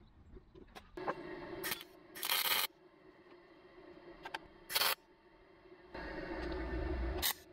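A welding torch crackles and buzzes in short bursts.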